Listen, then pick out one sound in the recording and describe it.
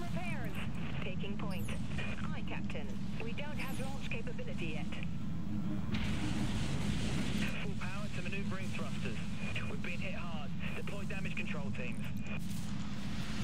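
A man talks calmly into a headset microphone.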